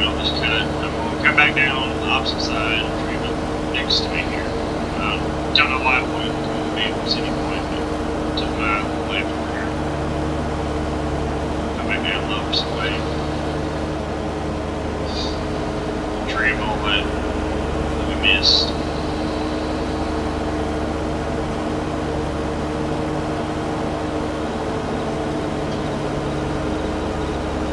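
A tractor engine hums steadily at low revs.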